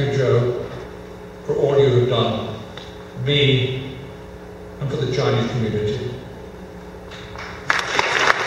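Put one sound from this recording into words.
An elderly man speaks calmly into a microphone in a large hall.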